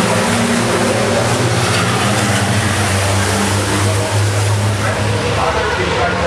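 A racing truck's diesel engine roars loudly as it speeds past.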